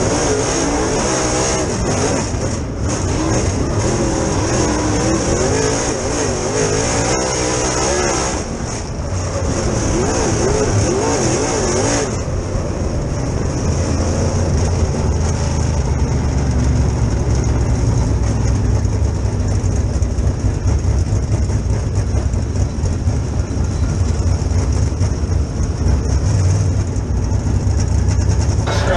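A race car engine roars and revs up and down close by.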